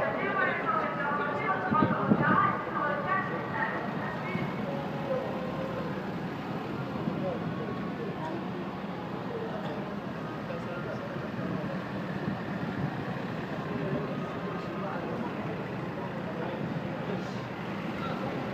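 Wind blows outdoors.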